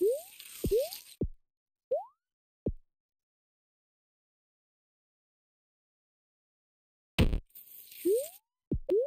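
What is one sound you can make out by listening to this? Short electronic thumps sound as a game figure lands.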